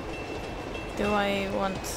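A young person talks briefly into a microphone.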